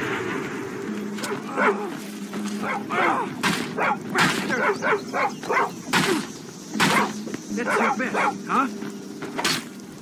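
Wolves snarl and growl in a fight.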